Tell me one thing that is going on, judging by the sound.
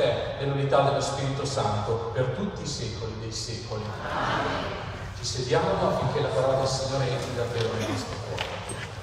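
A man sings through a loudspeaker in a large echoing hall.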